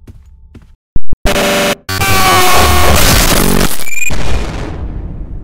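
A loud harsh screech blares suddenly and then fades.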